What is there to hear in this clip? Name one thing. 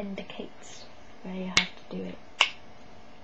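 A young woman speaks calmly, close by.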